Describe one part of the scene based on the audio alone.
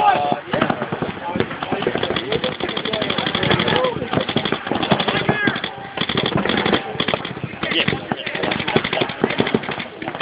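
Paintball markers pop in rapid bursts outdoors.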